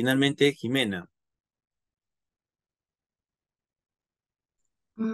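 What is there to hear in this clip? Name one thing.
A man speaks calmly through a microphone in an online call.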